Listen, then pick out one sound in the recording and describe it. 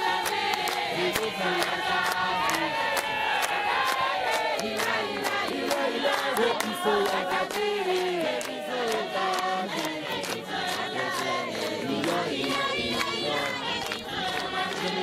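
A large crowd of men and women sings together outdoors.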